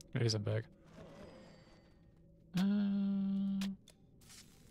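Magic spells zap and ring out in a video game fight.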